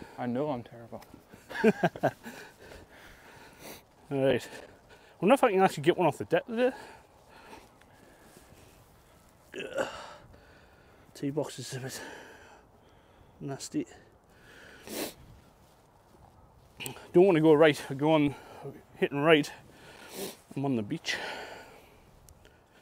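A man talks casually close by, outdoors.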